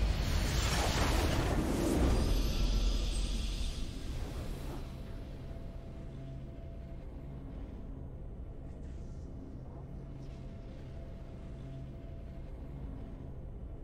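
A triumphant fanfare swells and then fades.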